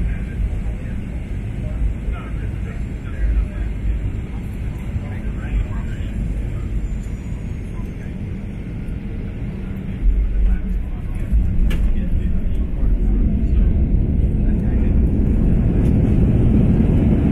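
Wheels rumble over the runway, growing louder as the plane speeds up.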